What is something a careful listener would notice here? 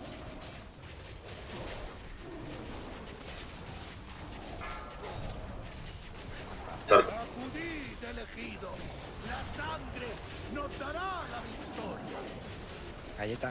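Magic spells whoosh and chime in a busy fight.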